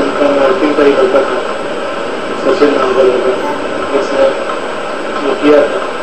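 A middle-aged man speaks calmly through a television loudspeaker.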